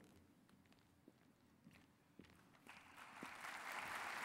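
A man's footsteps sound on a stage floor.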